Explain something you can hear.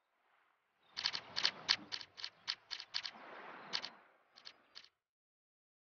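Game menu clicks tick rapidly as cards scroll past.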